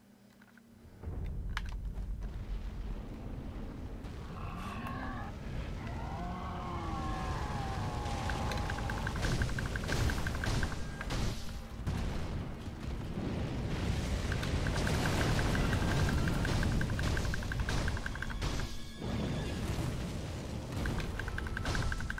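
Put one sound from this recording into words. Fire roars and crackles loudly.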